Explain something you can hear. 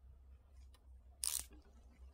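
A cable tie ratchets as it is pulled tight.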